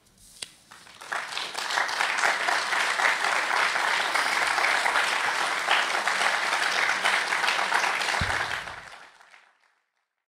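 An audience applauds loudly in a large hall, then the clapping fades away.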